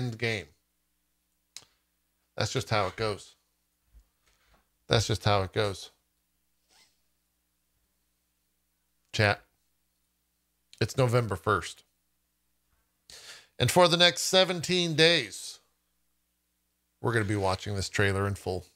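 A man speaks close to a microphone in short bursts, with pauses between them.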